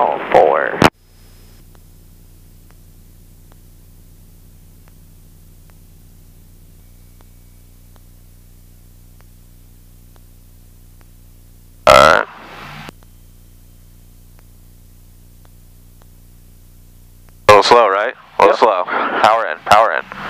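A man speaks briefly over a headset radio.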